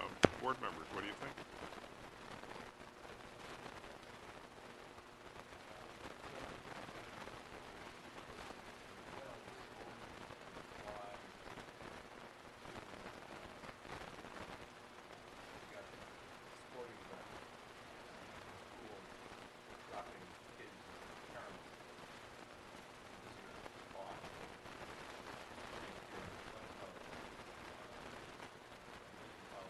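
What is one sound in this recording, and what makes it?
A man speaks calmly through a microphone in a large room.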